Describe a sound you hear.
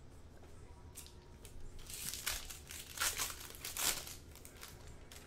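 A foil wrapper crinkles as it is torn open.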